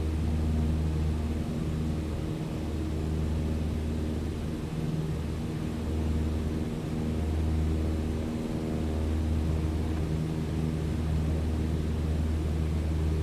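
A small propeller plane's engine drones steadily with a low hum.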